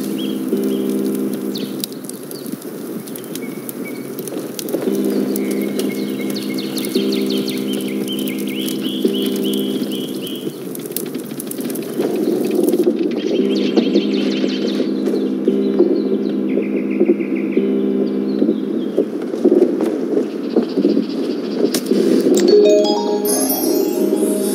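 A fire crackles steadily in a hearth.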